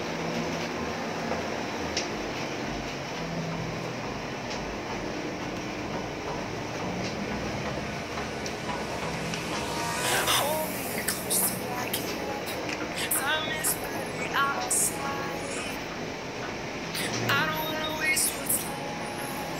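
A large printer hums steadily.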